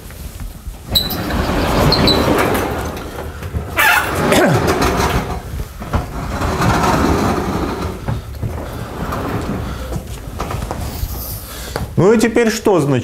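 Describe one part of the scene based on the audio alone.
A large sliding board rumbles as it moves.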